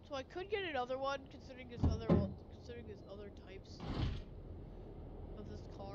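A car door opens with a thud.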